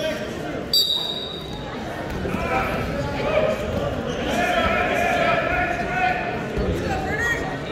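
Wrestlers thump and scuffle on a mat.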